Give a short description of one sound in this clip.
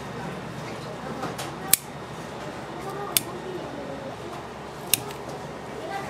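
Scissors snip through soft clay.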